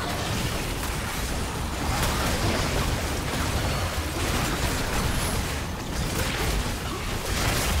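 Magic blasts and impacts crackle rapidly during a battle.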